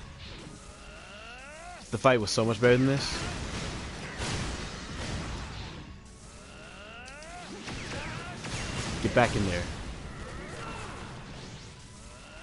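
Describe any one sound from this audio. Energy blasts crackle and explode loudly.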